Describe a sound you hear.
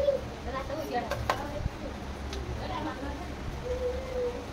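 A spoon clinks against a metal plate.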